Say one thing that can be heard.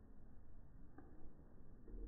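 A wooden ball clacks into a wooden cup.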